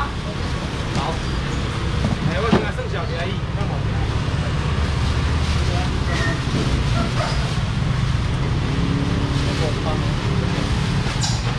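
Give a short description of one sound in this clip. Plastic bags rustle as a young man handles them.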